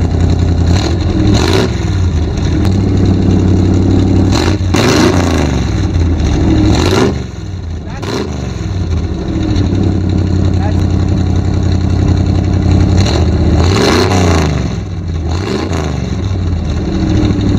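A truck engine revs sharply several times and settles back down.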